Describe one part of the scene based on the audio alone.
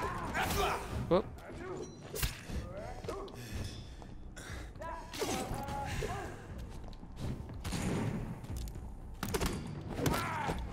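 Heavy blows land with sharp thuds.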